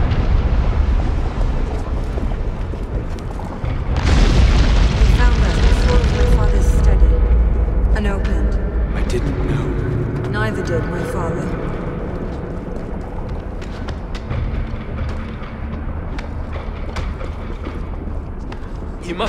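A deep rumble rolls on steadily.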